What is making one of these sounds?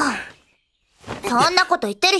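A young woman speaks sharply and scolds.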